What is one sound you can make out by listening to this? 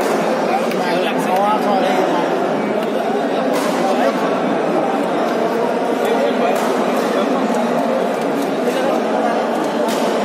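Shuttlecocks are struck with sharp taps of rackets.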